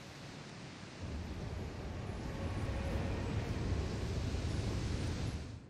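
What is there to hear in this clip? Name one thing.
A storm roars with a deep, swelling rumble.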